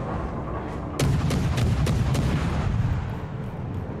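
A ship's big guns fire with a loud boom.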